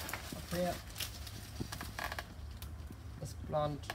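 Large leaves rustle as a hand pulls on them.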